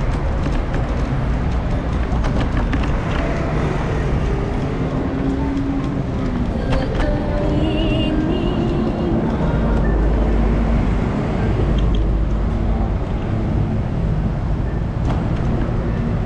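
City traffic rumbles steadily on a nearby road outdoors.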